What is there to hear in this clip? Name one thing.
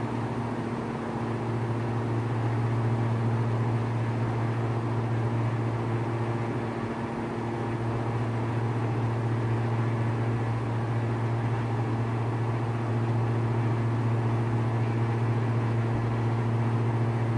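A light aircraft's propeller engine drones steadily from inside the cockpit.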